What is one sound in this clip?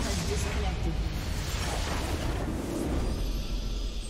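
A loud rumbling explosion from a video game booms and fades.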